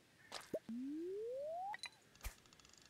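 A fishing line is cast with a quick rising whistle.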